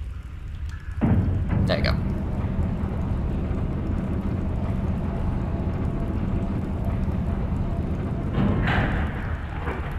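A metal lift rumbles and clanks as it moves.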